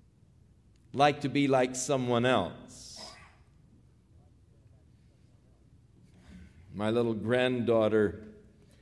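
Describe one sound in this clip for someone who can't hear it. A middle-aged man speaks emphatically into a microphone, with pauses.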